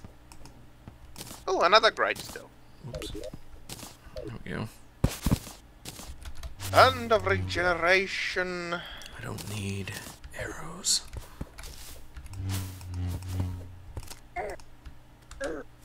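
Short digging clicks from a video game sound now and then.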